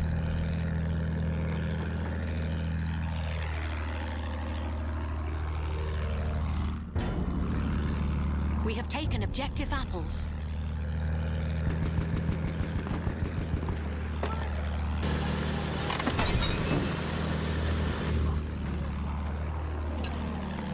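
A propeller plane engine drones steadily.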